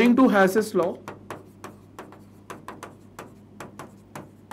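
A pen taps and scratches on a hard writing surface.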